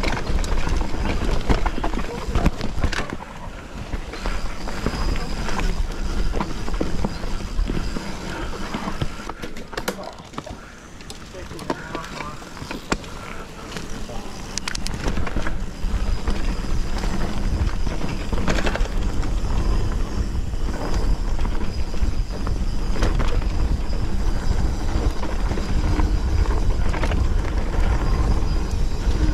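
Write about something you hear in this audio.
Bicycle tyres rumble and crunch over a dirt trail.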